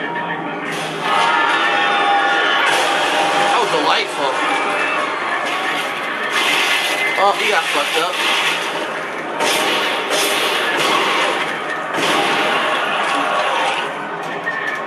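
Guns fire in rapid, loud bursts.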